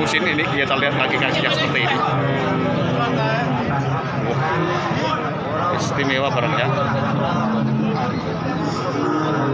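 Several men talk and chatter nearby, outdoors.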